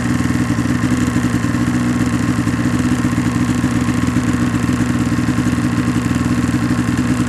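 A snowmobile engine roars steadily up close.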